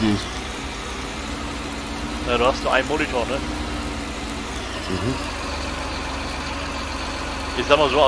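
A heavy machine's engine hums low and steady.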